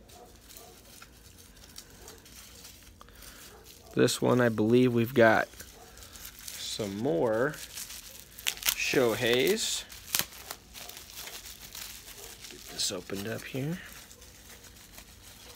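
Plastic bubble wrap crinkles as hands handle it.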